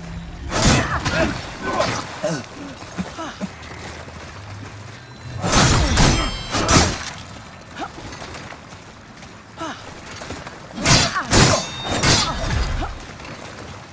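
A sword swings and strikes in a fight.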